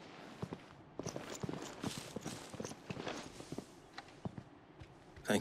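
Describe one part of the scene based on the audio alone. Footsteps crunch on stone, moving away.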